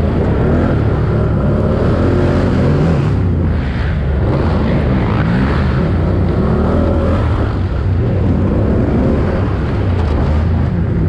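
Tyres crunch over dirt and rocks.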